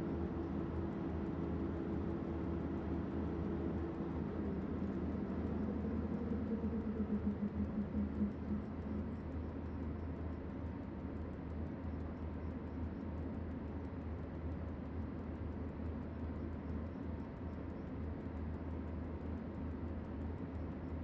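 An electric locomotive hums steadily as it runs along the track.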